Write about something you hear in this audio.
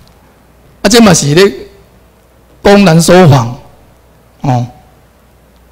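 A man speaks into a microphone over loudspeakers in a hall, with pauses between phrases.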